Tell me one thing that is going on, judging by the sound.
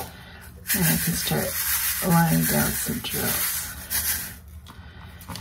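Fine glitter rustles and slides inside a small plastic box.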